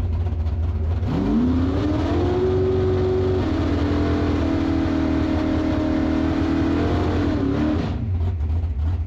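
A race car engine revs up, holds high, and drops back.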